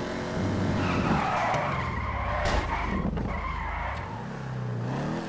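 Tyres screech as a car slides through a turn.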